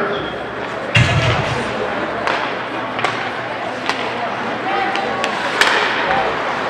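Hockey sticks slap a puck.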